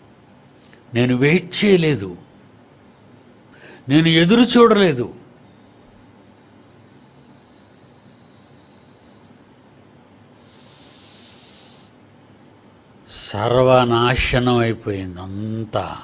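An elderly man speaks with animation into a close microphone, in short bursts with long pauses.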